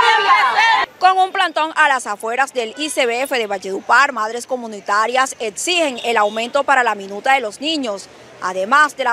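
A young woman reports calmly into a microphone.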